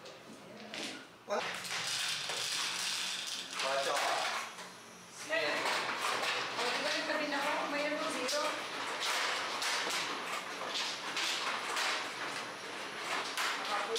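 Mahjong tiles clack and click against each other.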